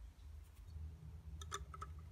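Small metal pins click against a plastic ring.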